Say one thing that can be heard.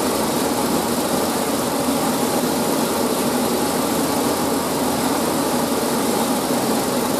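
A grain dryer runs with a steady roar and whir.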